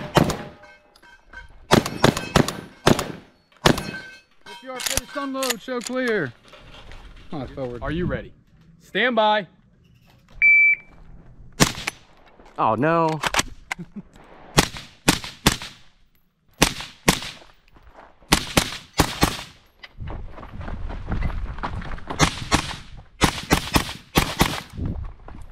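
Gunshots crack loudly outdoors in quick bursts.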